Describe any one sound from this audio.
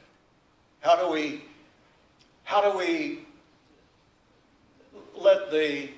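An elderly man speaks slowly and emphatically, in short phrases with pauses, into a microphone.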